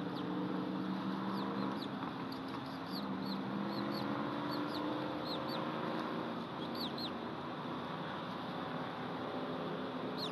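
Twigs rustle as a large bird shifts about on its nest.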